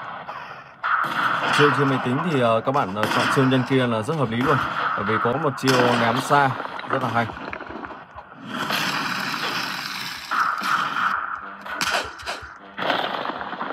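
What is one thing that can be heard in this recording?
Video game fighting sounds play from a tablet.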